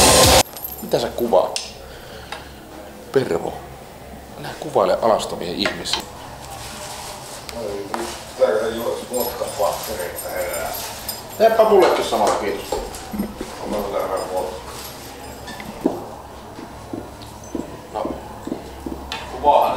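A man talks casually nearby.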